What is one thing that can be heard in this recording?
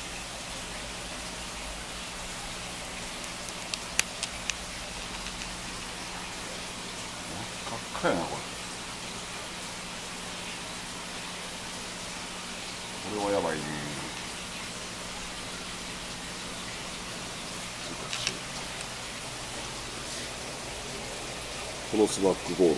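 Air bubbles stream and gurgle steadily in water.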